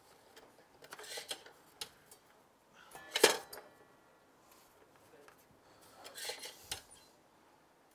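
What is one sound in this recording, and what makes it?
Wooden pieces knock and clatter against a metal surface.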